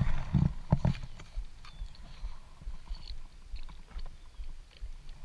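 Water laps gently against a small boat.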